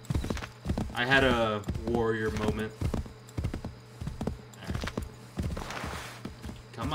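A horse gallops, its hooves thudding on soft ground.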